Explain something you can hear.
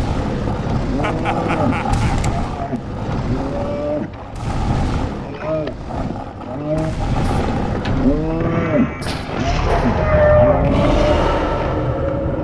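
A monster groans and growls loudly.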